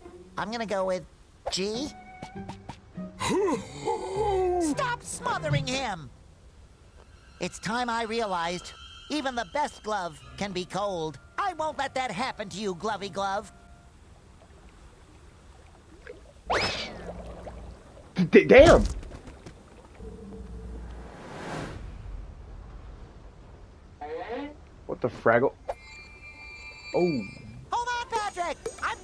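A cartoon character speaks with animation in a high, squeaky voice.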